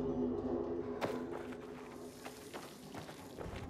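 A blade hacks into flesh with wet, heavy thuds.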